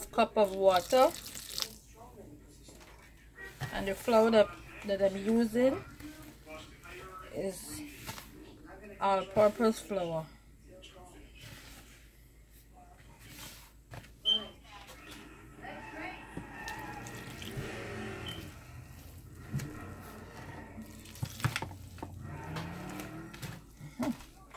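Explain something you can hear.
Hands squish and rub through damp flour in a bowl.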